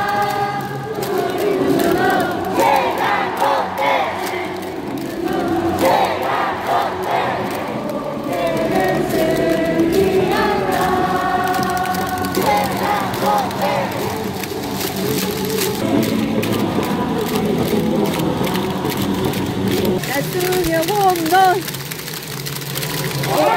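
Crowd members clap and cheer.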